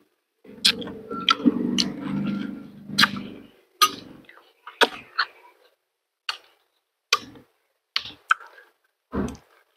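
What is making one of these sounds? A man eats soft fruit with loud, wet smacking and slurping close up.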